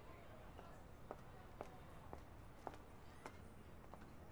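Heels click on a hard floor as a woman walks.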